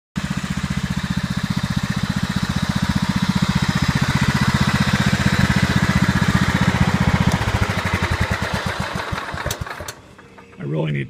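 A small lawn mower engine runs with a fast, rattling chug, then slows and dies away.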